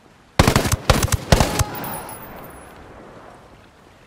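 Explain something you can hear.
Rapid bursts of rifle fire ring out and echo away.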